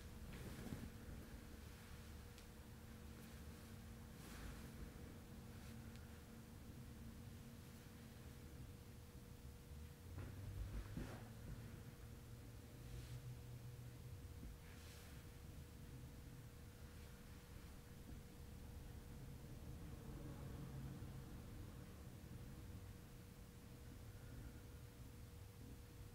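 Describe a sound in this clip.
Hands rub and rustle softly against fabric.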